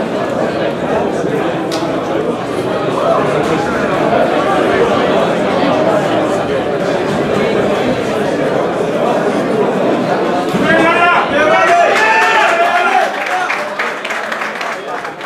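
A crowd murmurs and chatters in an echoing hall.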